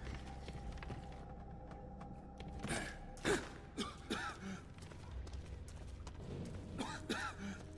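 Footsteps crunch on a gritty stone floor.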